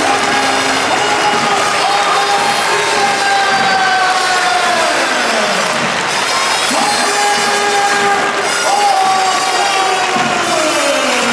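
A large stadium crowd sings and chants loudly in unison.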